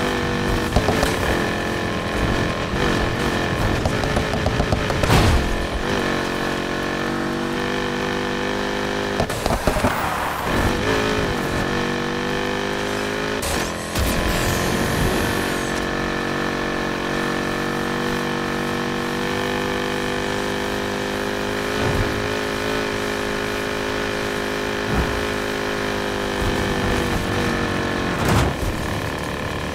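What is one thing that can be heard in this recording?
A car engine roars at high revs.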